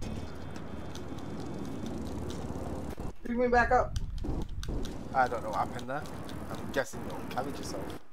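A bicycle rolls along over pavement.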